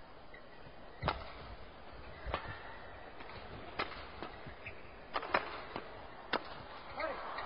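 Badminton rackets strike a shuttlecock in a rally.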